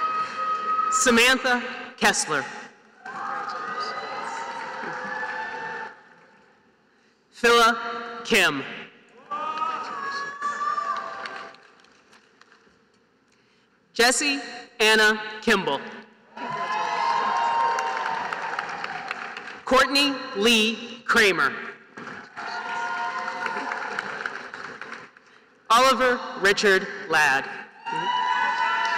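A crowd cheers and whoops in short bursts.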